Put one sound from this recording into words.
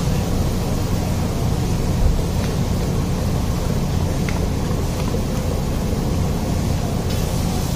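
A ladle mashes chickpeas in a steel pot.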